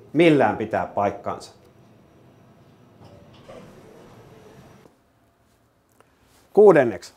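A middle-aged man speaks close to a microphone in a calm, explanatory way.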